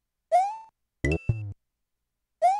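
A video game character stomps an enemy with a short thud.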